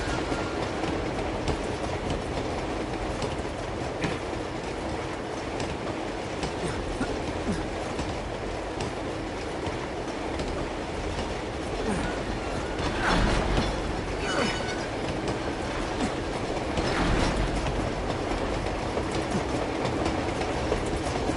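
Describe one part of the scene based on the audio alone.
Metal clanks and knocks on a moving train.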